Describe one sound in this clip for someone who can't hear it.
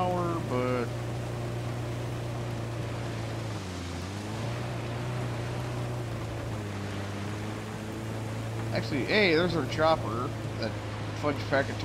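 A vehicle engine drones steadily, dipping briefly in pitch.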